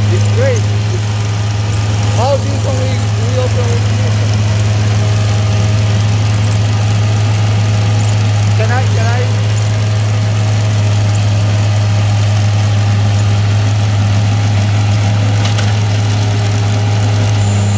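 A small trencher engine runs with a steady loud drone.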